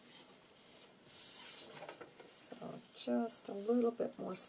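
Paper rustles and slides across a table.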